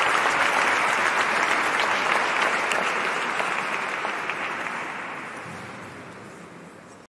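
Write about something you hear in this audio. An audience applauds in a large echoing hall, the clapping slowly fading away.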